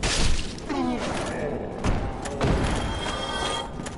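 A sword strikes with a heavy metallic hit.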